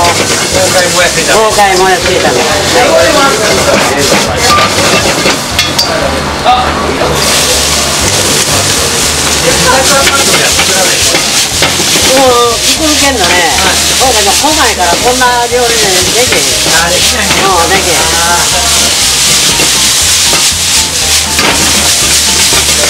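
Food sizzles and hisses loudly in a hot wok.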